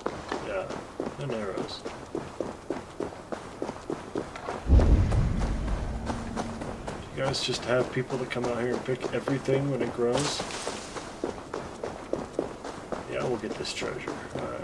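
Footsteps crunch quickly on a gravel path.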